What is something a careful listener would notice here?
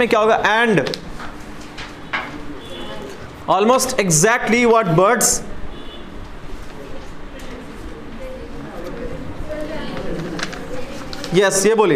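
Paper rustles in a young man's hands.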